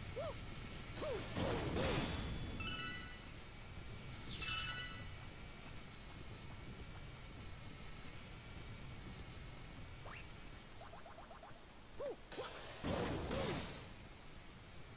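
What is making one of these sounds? A cartoon character's spin makes loud whooshing bursts.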